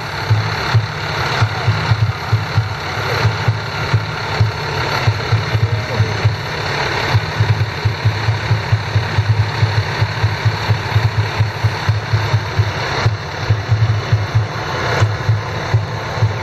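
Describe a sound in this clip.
A fire engine's motor rumbles as the engine rolls slowly past.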